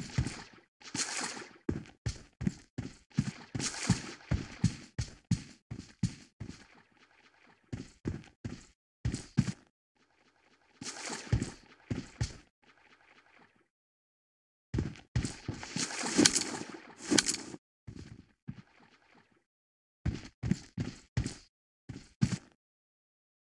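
Boots thud in quick running footsteps on a hard surface.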